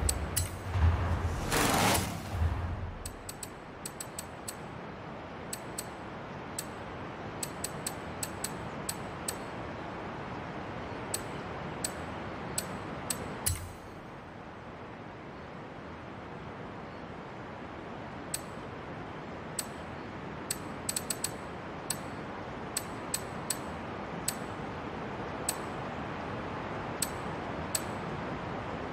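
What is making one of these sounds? Menu clicks tick sharply, one after another.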